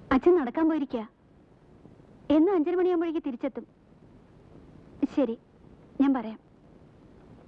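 A young woman speaks on a telephone, calmly and warmly, close by.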